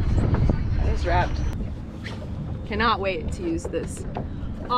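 A young woman speaks cheerfully and close by.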